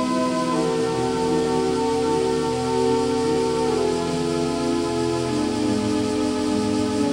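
A choir sings a slow, sustained hymn in a large echoing hall.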